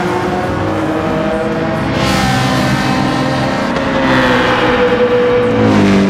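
Several racing car engines drone in the distance down a long straight.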